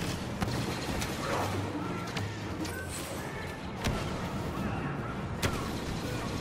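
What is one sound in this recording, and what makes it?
Sharp explosions burst nearby.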